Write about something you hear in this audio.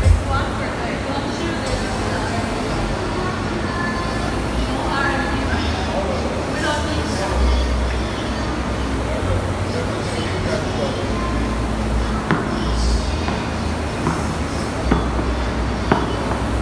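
A rowing machine's flywheel whooshes in a steady, repeating rhythm.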